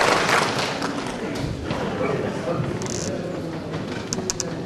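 A man speaks through a microphone and loudspeakers in a large hall.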